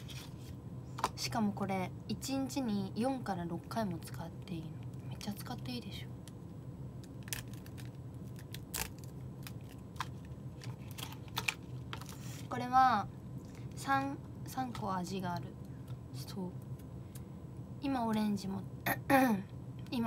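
A young woman speaks calmly and softly, close to a microphone.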